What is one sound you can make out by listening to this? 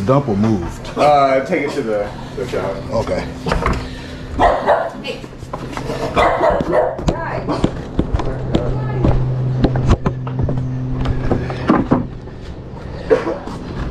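A flat plastic panel knocks and scrapes as it is handled.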